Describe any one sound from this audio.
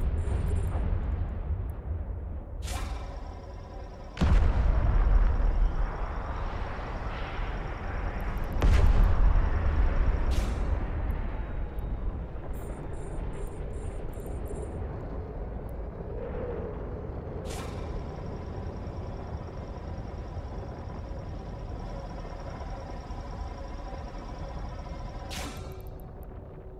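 A spaceship's mining laser hums with a deep, steady rumble.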